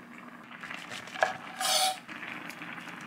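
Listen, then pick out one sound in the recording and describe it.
A knife chops through mushrooms on a wooden board.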